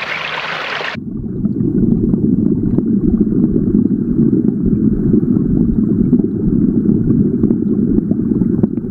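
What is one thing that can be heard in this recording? Water rumbles in a deep, muffled way, as if heard from underwater.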